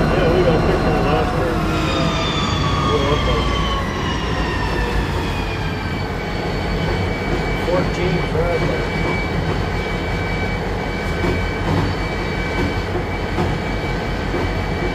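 A locomotive engine rumbles steadily while moving.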